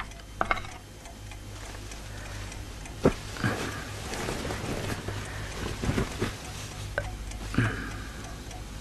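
A man speaks softly nearby.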